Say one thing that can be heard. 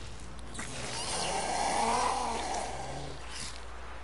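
A creature lets out a gurgling shriek.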